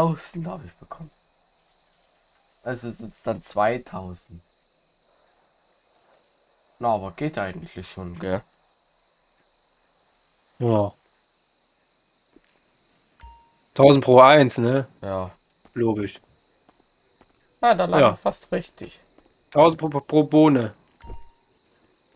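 A young man talks casually over an online call.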